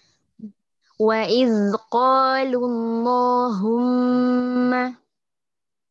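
A man chants in a drawn-out, melodic voice over an online call.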